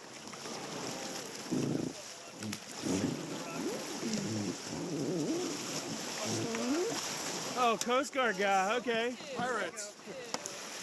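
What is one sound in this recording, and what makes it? Young men and women talk and call out to each other outdoors.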